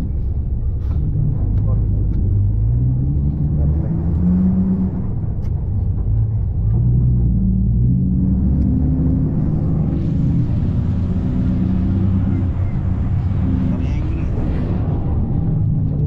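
A bus engine revs up and down as the bus picks up speed.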